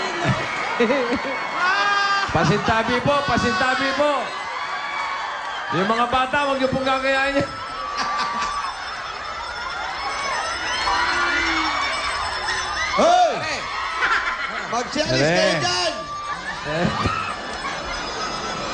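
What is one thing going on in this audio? A woman shrieks and laughs.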